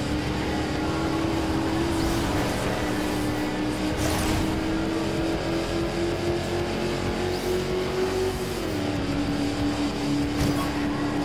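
A truck engine roars steadily as it speeds along.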